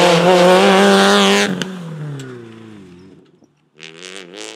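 A rally car engine roars loudly up close and then fades away as the car drives off.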